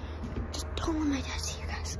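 A young girl speaks close to the microphone.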